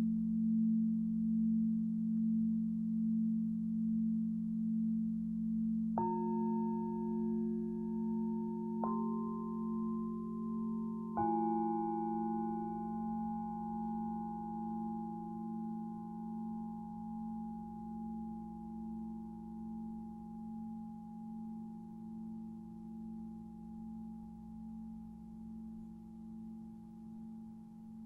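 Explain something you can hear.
A crystal singing bowl hums with a low, steady, gently pulsing tone.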